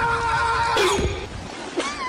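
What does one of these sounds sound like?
Waves splash against rocks.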